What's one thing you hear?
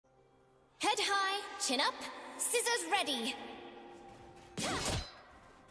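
Fantasy battle sound effects whoosh and clash.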